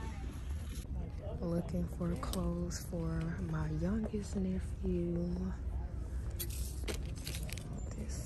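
Plastic clothes hangers click and scrape along a metal rail.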